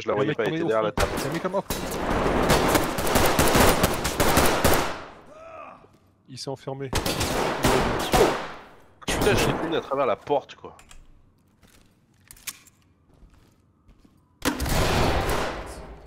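Rifles fire in loud rapid bursts indoors.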